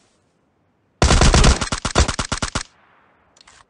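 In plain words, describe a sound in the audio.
A rapid burst of rifle fire rings out close by.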